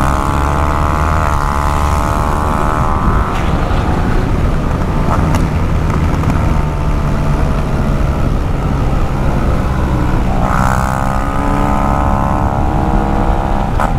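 Wind rushes loudly past the rider.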